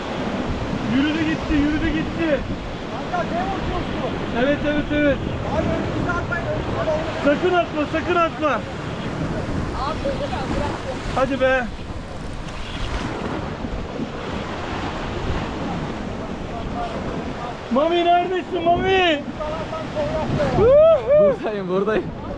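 A man talks excitedly nearby.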